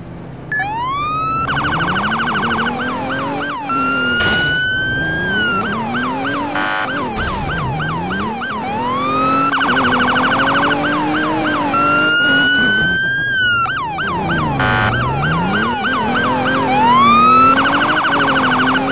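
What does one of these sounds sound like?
A car engine hums and revs as it drives.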